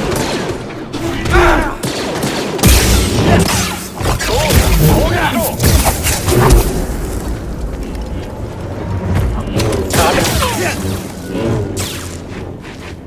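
Energy blades hum and clash loudly against metal.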